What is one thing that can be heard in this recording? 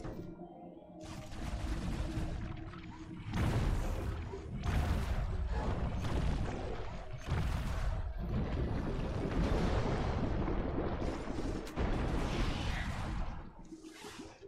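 Game weapon blasts fire and explode in quick bursts.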